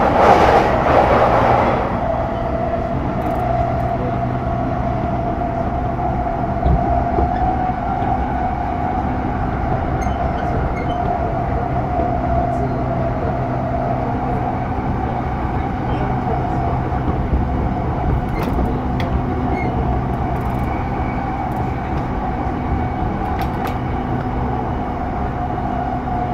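An electric train rumbles along with a steady whining motor.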